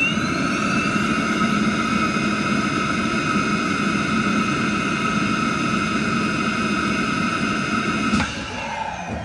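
A machine runs with a steady, loud whirring hum, then stops abruptly.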